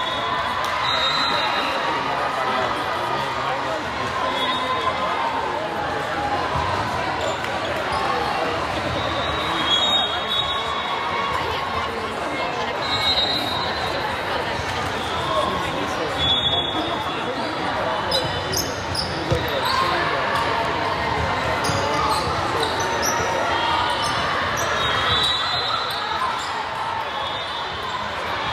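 Many voices chatter and call out, echoing through a large hall.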